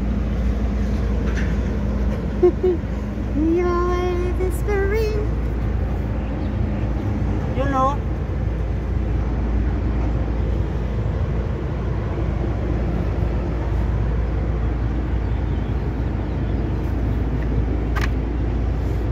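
Wind rumbles steadily against the microphone outdoors.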